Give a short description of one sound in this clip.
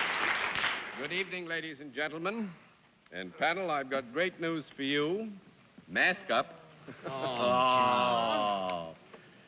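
A man speaks clearly through a microphone.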